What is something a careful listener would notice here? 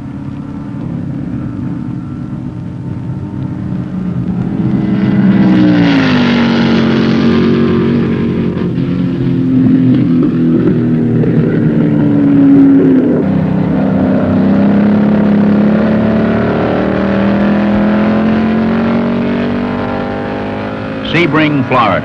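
A racing car engine roars loudly, its pitch rising and falling as the car speeds past and shifts gears.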